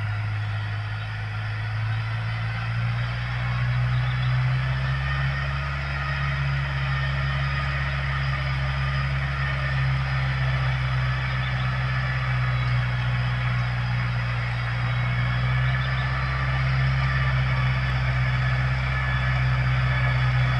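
A tractor engine drones steadily and slowly comes closer.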